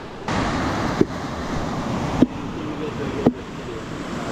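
A man strikes a coconut with a machete in sharp knocks.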